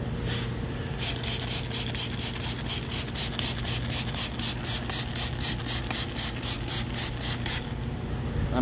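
A spray bottle squirts in quick, repeated bursts.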